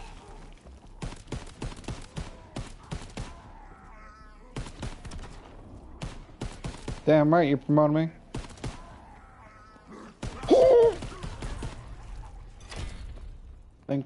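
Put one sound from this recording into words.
Gunshots ring out in rapid bursts.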